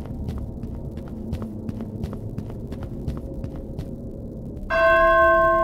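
Footsteps tap quickly and steadily on a hard floor.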